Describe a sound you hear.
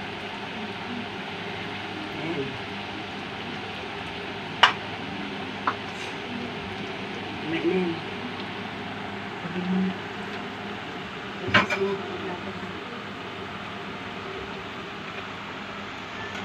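Oil sizzles and bubbles steadily as food deep-fries in a pan.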